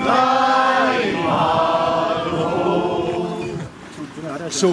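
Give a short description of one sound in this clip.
An elderly man speaks cheerfully close by.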